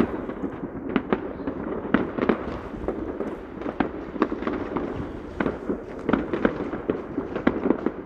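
Fireworks pop and bang in the distance, over and over.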